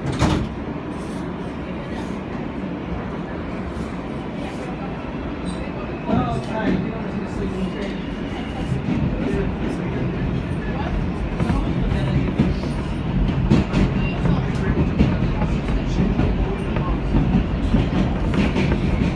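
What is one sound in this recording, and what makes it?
Cloth rustles and rubs up close.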